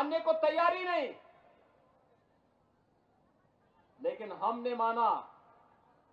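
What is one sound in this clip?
A middle-aged man speaks loudly and forcefully through a microphone, with pauses.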